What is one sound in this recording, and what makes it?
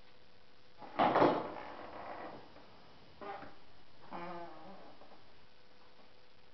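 Gloved hands knock and scrape against a stiff panel.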